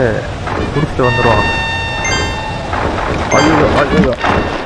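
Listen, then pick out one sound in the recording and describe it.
Bright electronic chimes ring out from a video game.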